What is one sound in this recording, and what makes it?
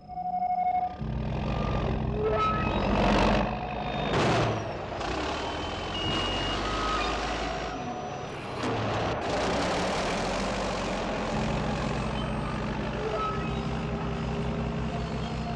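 A bulldozer's diesel engine rumbles steadily close by.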